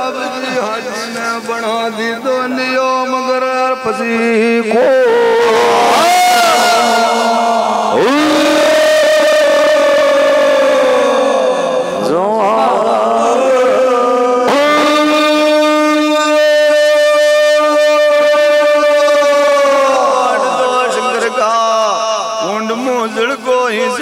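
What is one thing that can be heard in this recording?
A group of men sings loudly into microphones, with long held notes.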